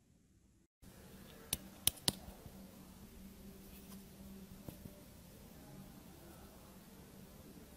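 A brush scrapes and pats powder in a tray.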